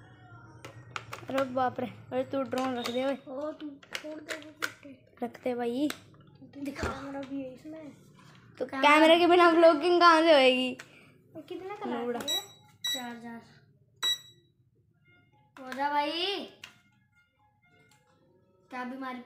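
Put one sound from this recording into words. A child talks with animation close by.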